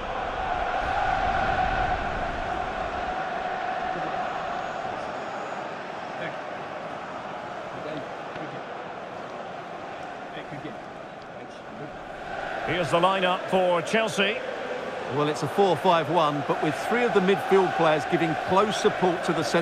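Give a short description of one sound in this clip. A large stadium crowd cheers steadily in the distance.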